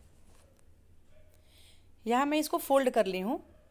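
Hands smooth out cloth with a soft rustle.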